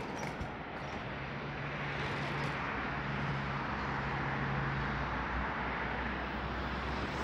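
Scooters hum past on a road nearby.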